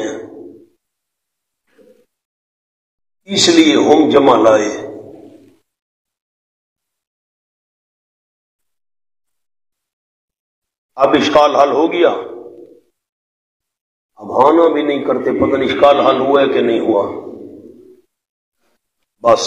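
A man speaks into a microphone in slow, earnest bursts with long pauses.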